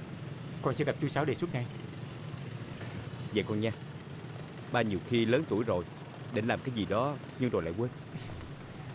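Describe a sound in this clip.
An older man speaks with animation close by.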